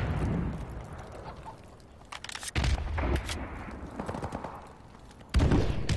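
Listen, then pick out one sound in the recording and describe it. A weapon's parts click and clack during reloading.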